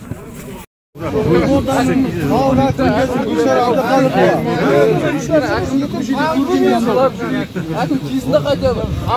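Several men argue loudly and with animation close by.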